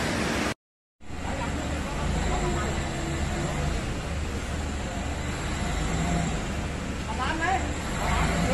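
A forklift engine idles with a low rumble.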